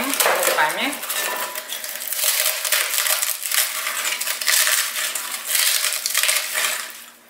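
Dry crackers crunch and crumble as hands break them.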